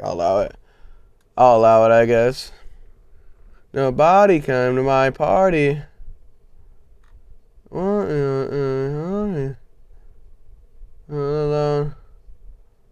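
A young man sings loudly into a microphone in short wavering bursts.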